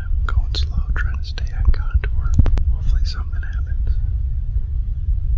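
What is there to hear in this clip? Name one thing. A middle-aged man speaks quietly and calmly, close to a microphone.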